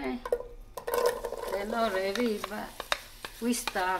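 Chopped onion pieces patter into a pot.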